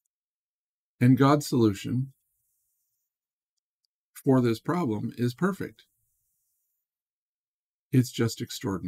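A middle-aged man reads out calmly into a close microphone, with pauses between phrases.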